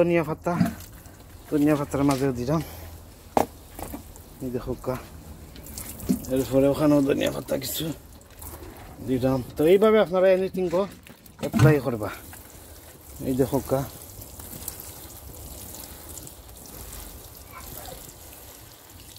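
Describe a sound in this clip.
Water from a watering can patters onto leafy plants and soil.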